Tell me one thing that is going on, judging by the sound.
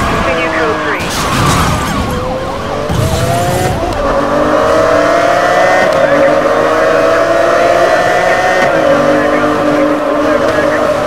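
A sports car engine roars and revs higher as it speeds up.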